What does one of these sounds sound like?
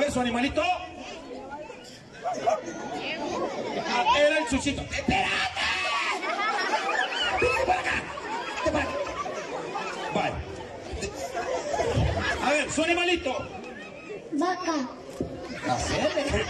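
Children shout and chatter excitedly.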